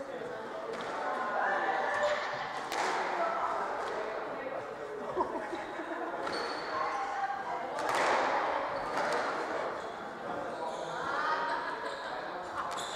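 A squash ball smacks sharply against the walls, echoing in a hard-walled court.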